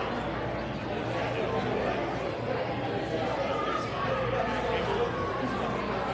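A young woman speaks into a microphone over loudspeakers in an echoing hall.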